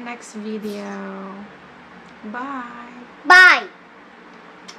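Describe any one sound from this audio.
A young girl speaks close by in a high, lively voice.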